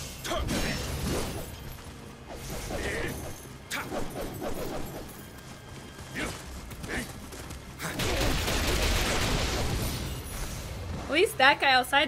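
Blades clash and clang in a fast fight with sharp hits.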